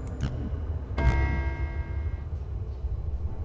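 A short electronic chime rings out and fades.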